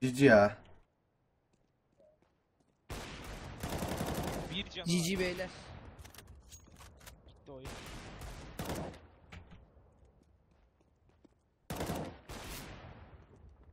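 A rifle fires short bursts of shots.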